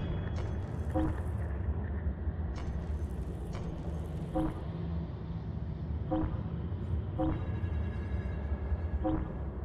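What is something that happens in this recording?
Short soft menu chimes sound as selections change.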